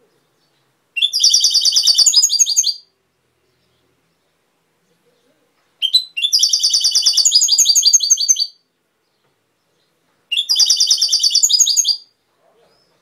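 A small songbird sings close by in short, rapid trilling bursts.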